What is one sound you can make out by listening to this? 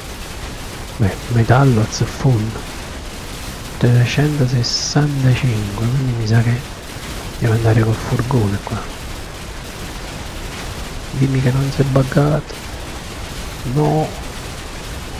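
A man talks casually into a microphone, close by.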